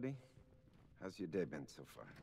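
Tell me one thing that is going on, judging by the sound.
A man asks a question calmly, close by.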